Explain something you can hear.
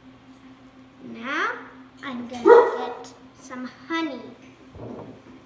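A young girl speaks brightly and close by.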